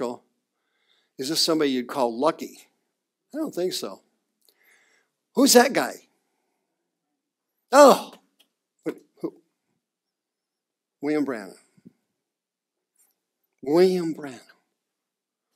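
A man speaks calmly to an audience, in short bursts with pauses.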